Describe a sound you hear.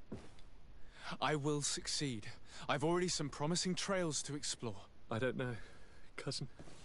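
A young woman speaks softly and sadly, close by.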